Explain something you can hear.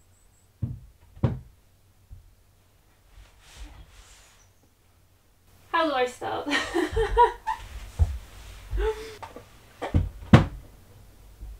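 A wooden board knocks against a wall.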